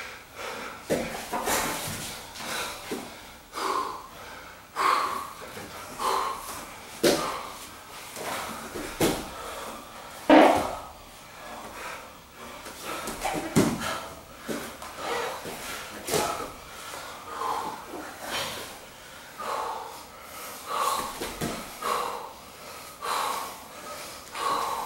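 Bodies thump and slap on a padded mat.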